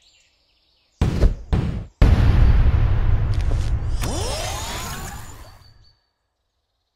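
A loud game jingle rings out, then fades.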